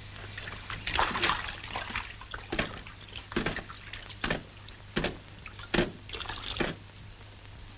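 Heavy boots clank on a metal ladder.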